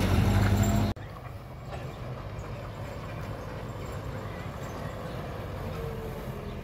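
A car engine hums faintly in the distance as the car slowly approaches.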